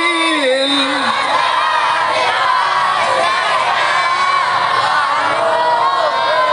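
A large crowd of men sings along together.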